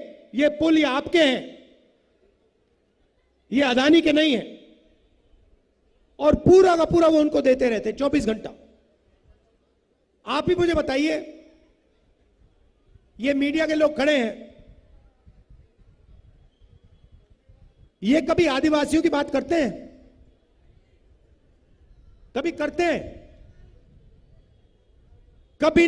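A man speaks forcefully into a microphone over loudspeakers, in short bursts with pauses.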